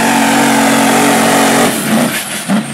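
A truck engine roars loudly at full power, then cuts off.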